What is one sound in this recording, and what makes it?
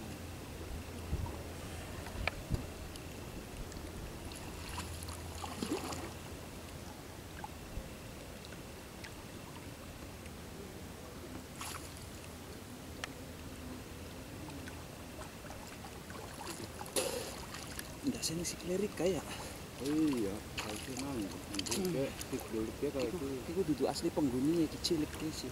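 Water sloshes as people wade through it.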